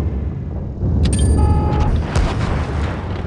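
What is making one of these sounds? A tank gun fires with a sharp boom.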